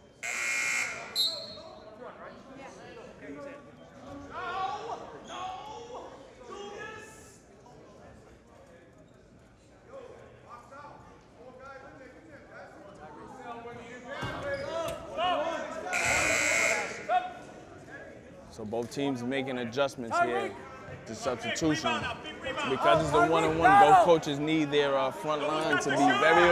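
A crowd of spectators chatters.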